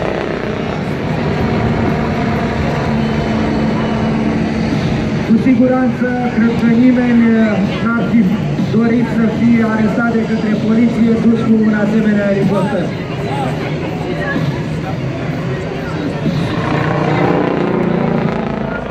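A helicopter drones overhead with a steady rotor thump.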